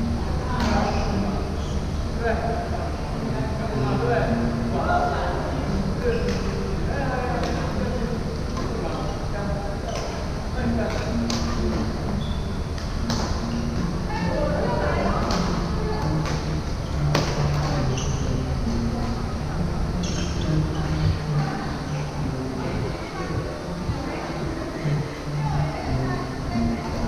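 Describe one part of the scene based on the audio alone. Men and women call out and talk in the distance.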